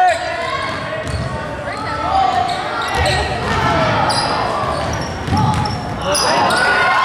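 A basketball thumps on the floor as it is dribbled.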